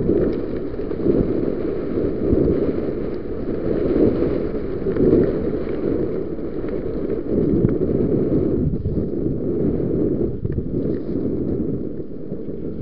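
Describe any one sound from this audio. Bicycle tyres roll and rattle over a bumpy dirt trail.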